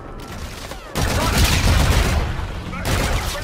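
Gunshots crack loudly nearby.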